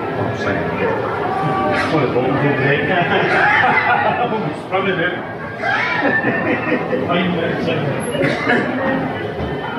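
A middle-aged woman talks close by with animation.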